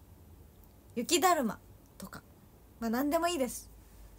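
A young woman speaks animatedly close to a microphone.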